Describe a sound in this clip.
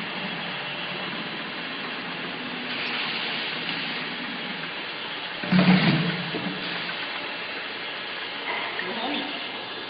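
Plastic bottles clatter along a conveyor.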